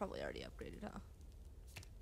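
A young woman speaks casually into a nearby microphone.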